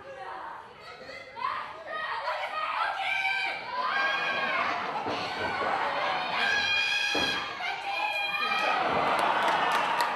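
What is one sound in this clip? Young women shout with animation in a large hall.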